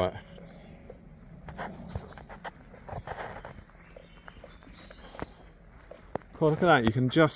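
Footsteps crunch through dry undergrowth.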